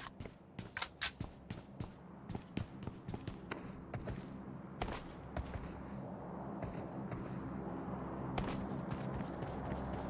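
Footsteps run across a floor.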